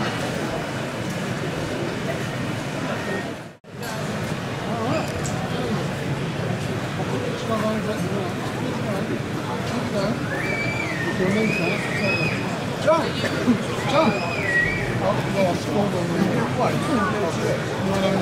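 Many people talk at once in a large, echoing hall.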